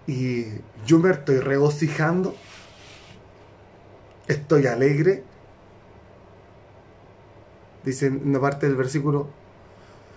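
A man speaks calmly and close by, in short phrases with pauses.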